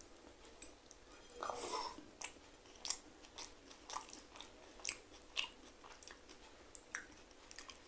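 A man chews food loudly with wet mouth sounds.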